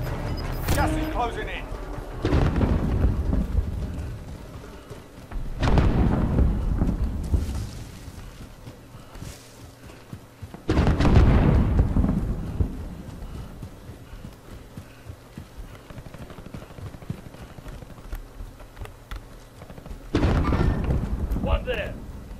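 Footsteps crunch quickly over snow and dry grass.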